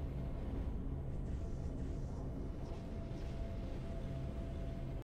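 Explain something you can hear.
Triumphant music plays with a deep, steady low rumble.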